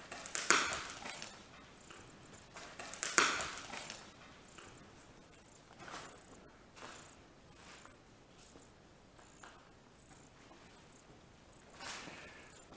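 Footsteps shuffle slowly on a hard path nearby.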